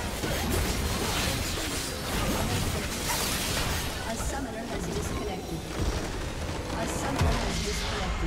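Game spell effects crackle and explode during a fight.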